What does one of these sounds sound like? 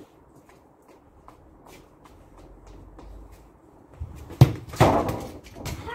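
A football thuds as it is kicked and bounces.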